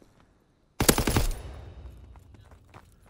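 A rapid burst of loud gunfire rings out and echoes away.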